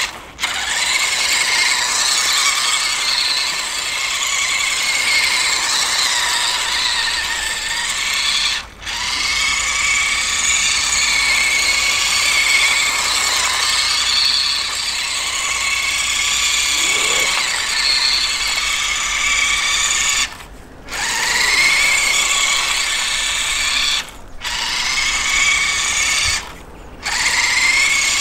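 Water splashes and swishes under spinning tyres.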